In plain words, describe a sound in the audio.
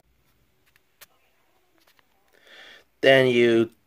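Plastic toy figures click softly as fingers handle them.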